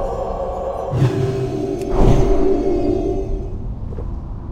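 A magic spell shimmers and whooshes.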